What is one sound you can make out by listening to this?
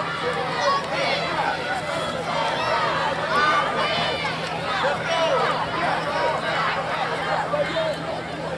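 Young children shout and cheer excitedly nearby, outdoors.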